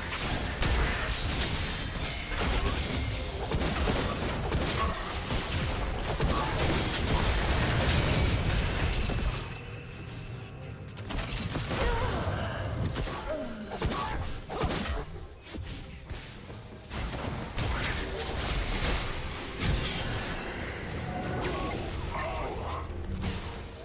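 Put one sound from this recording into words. Magic blasts and weapon strikes clash in a fast battle.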